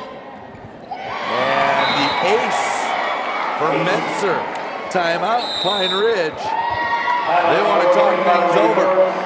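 Young women on a team shout and cheer excitedly.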